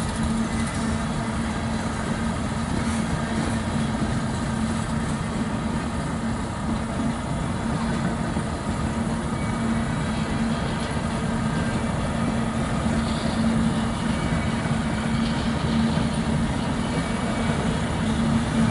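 A truck engine idles nearby with a low steady hum.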